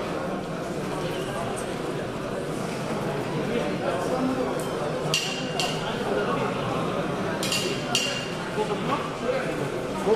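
A crowd of men murmurs and chatters in a large echoing hall.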